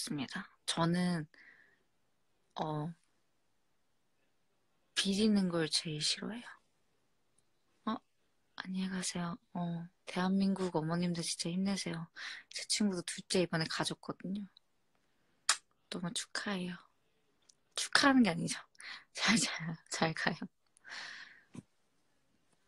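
A young woman talks close to a phone microphone, casually and with animation.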